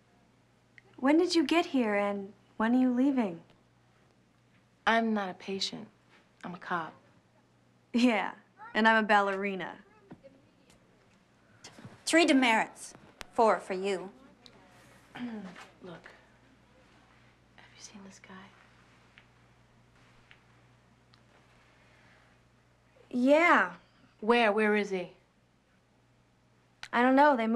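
A young woman speaks calmly and firmly, close by.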